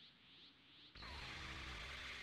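A burst of energy whooshes and rumbles loudly.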